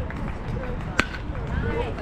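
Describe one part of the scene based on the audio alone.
A metal bat cracks sharply against a ball.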